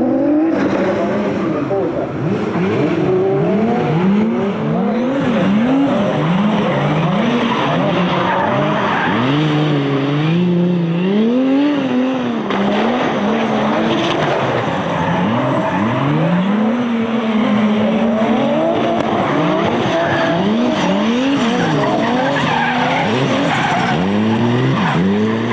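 Car engines rev hard and whine, rising and falling.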